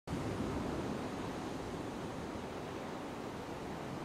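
Gentle waves wash onto a shore.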